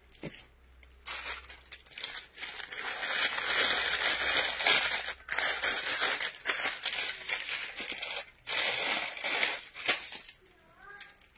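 Plastic wrapping crinkles and rustles.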